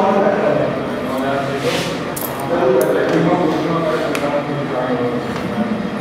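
Small tiles clink softly as they are sorted by hand.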